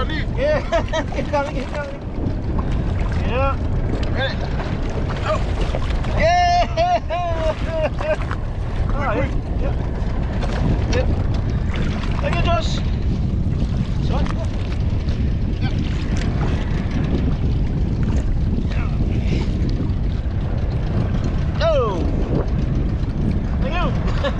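Men on a nearby boat call out and laugh.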